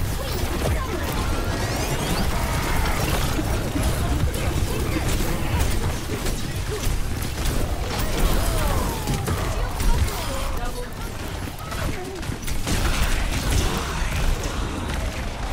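Rapid gunfire and blasts from a video game crackle and boom.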